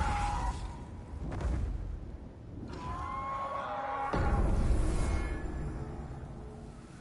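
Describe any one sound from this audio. A dragon beats its wings and roars overhead.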